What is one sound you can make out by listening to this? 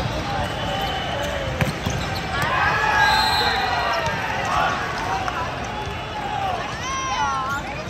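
Young men shout and cheer in a large echoing hall.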